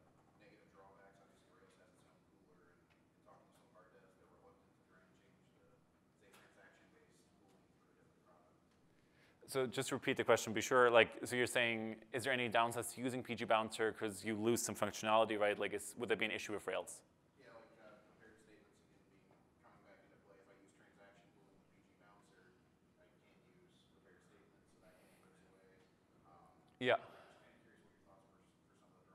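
A man speaks at a distance in a large room.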